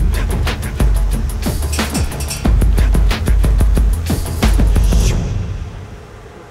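A metal spoon scrapes and clatters rapidly against a metal bowl.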